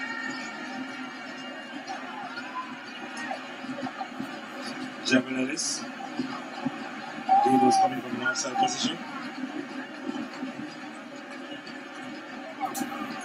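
A large crowd murmurs and cheers in a big open stadium.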